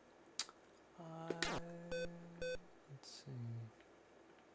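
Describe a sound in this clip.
A retro video game plays short electronic beeps and buzzes.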